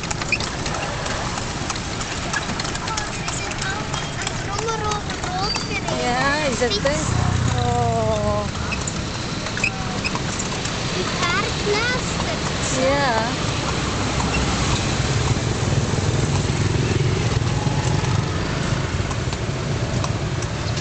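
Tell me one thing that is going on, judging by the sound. Traffic rumbles along a street outdoors.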